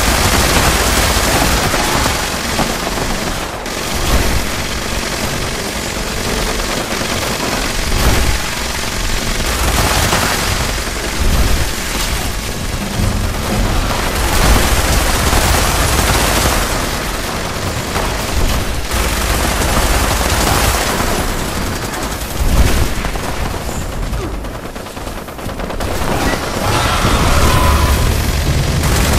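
Guns fire in loud bursts.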